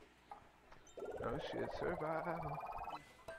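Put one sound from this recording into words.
Upbeat electronic game music plays a short bouncy jingle.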